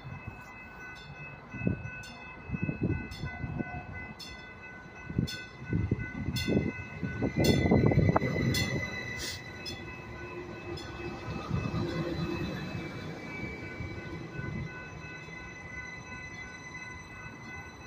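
A passenger train rumbles closer along the tracks and rolls slowly past close by.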